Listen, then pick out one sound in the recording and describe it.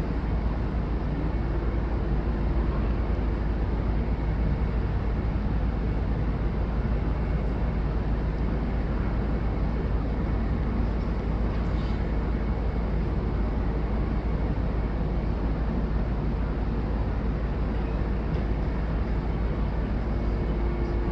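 A piano plays in a large echoing hall.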